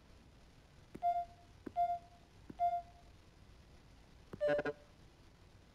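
Electronic panel buttons beep with short tones as they are pressed.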